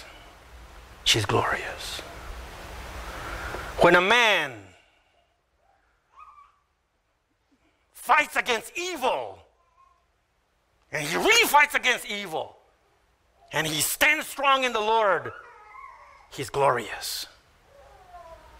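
An older man speaks forcefully into a microphone, in bursts with pauses.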